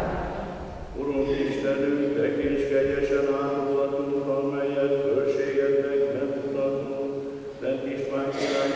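An elderly man chants in a steady singing voice through a microphone, in a large echoing hall.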